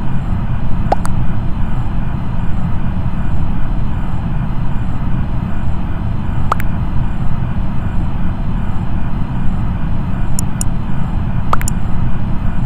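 Short sharp clicks sound a few times as a game menu opens and closes.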